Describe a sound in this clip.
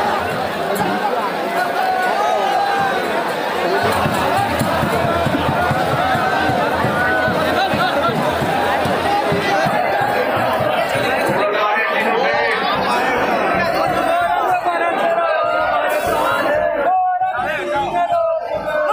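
A large crowd of men and women shouts and cheers loudly all around, close by.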